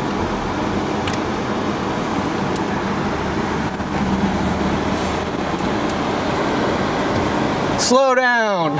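A car engine hums quietly.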